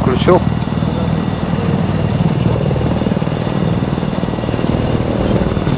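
An aircraft engine hums steadily and low.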